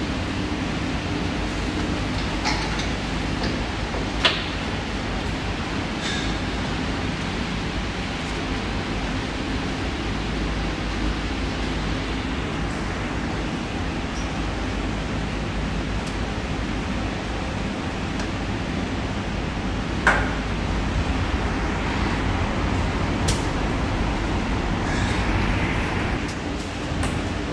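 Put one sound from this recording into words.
A steady low hum of machinery fills a large hall.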